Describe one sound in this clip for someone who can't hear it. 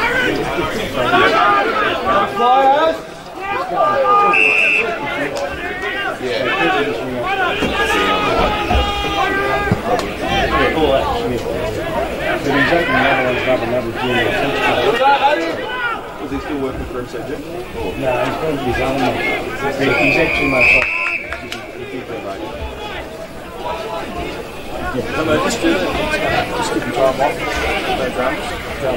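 Men shout and call outdoors across an open field.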